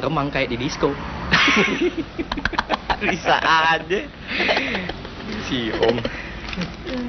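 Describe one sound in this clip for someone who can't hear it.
Two men laugh loudly together.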